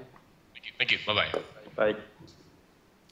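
A man speaks over an online call, heard through loudspeakers.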